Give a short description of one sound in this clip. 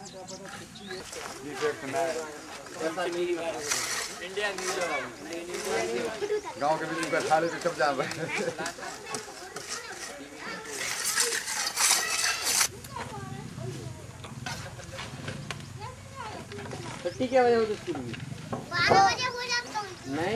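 Men and children in a crowd talk and shout nearby outdoors.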